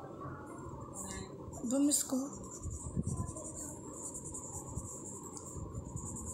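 An oil pastel scrapes softly across paper.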